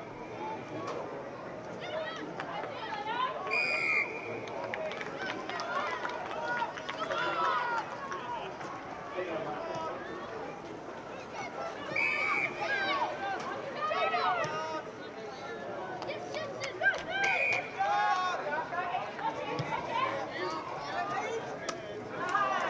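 Teenage boys shout and call to each other across an open field.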